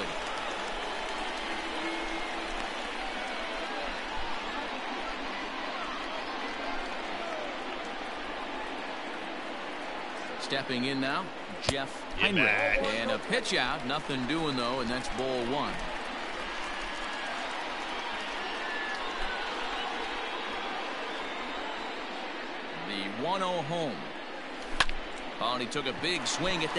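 A crowd murmurs steadily in a large stadium.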